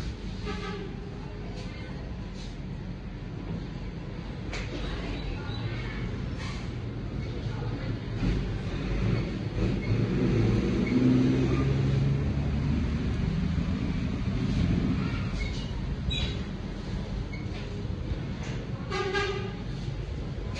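Small metal tools click softly close by.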